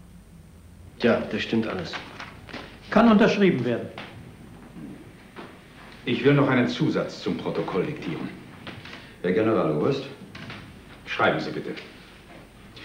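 An elderly man speaks firmly.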